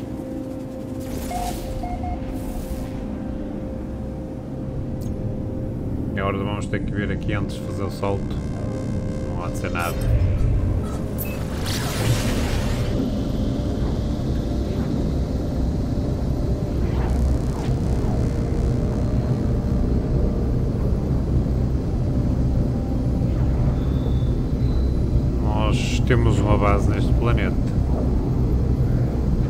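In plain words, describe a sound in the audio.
A spaceship engine hums, then swells into a deep, steady roar.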